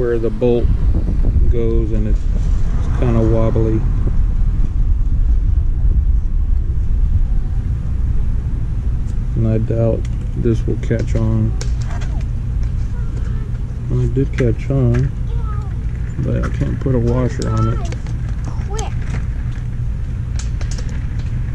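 A hand spins a wheel on its hub, with soft clicks.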